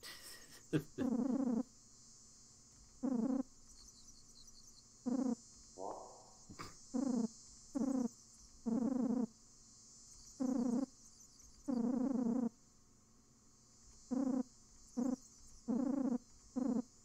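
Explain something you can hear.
Short electronic blips chatter in quick bursts.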